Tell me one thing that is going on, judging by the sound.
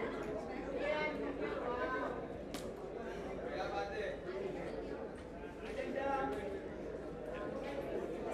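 A young woman talks casually nearby.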